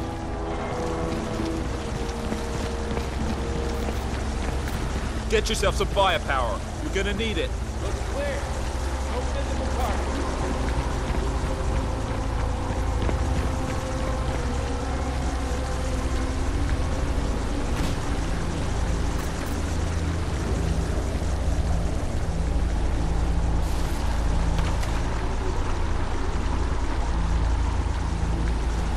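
Footsteps rustle through grass and leafy undergrowth.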